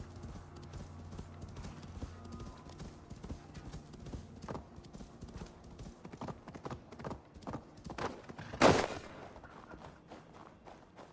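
A young woman talks calmly into a close microphone.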